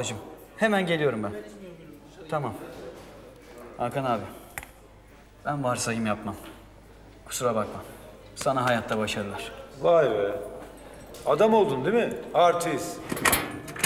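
A middle-aged man talks urgently, close by.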